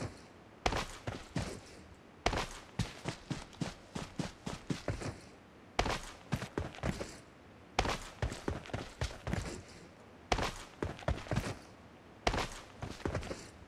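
Quick footsteps rustle through dry grass.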